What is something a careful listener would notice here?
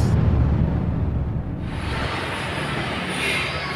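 A wrench turns a bolt on a metal engine part.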